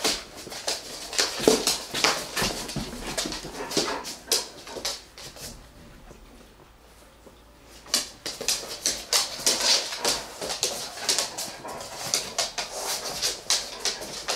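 Dogs' claws click and patter on a hard floor.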